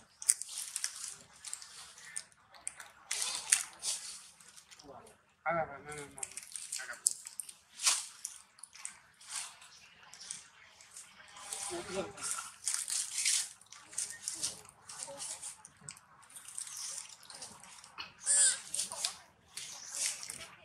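Paper crinkles and rustles as a monkey handles it.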